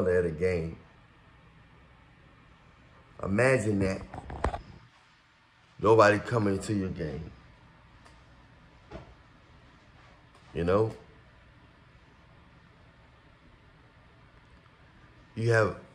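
A man speaks calmly in short phrases close to the microphone.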